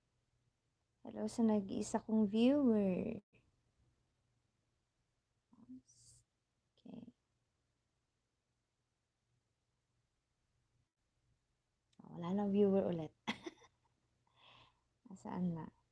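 A woman speaks calmly and closely into a microphone, pausing between phrases.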